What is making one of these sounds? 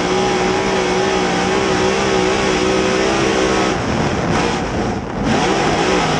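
A race car engine roars loudly from close by, its pitch dipping as the driver lifts off and rising again.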